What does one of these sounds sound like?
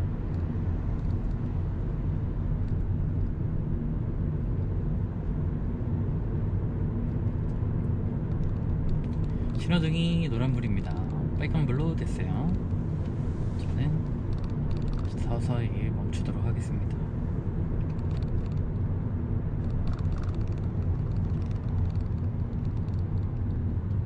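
A car's engine and tyres hum steadily from inside the car as it drives along a road.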